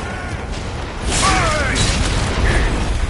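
Blades clash and slash with a sharp ring.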